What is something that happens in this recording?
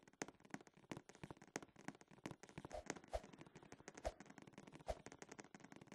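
Quick light footsteps tap on a hard floor.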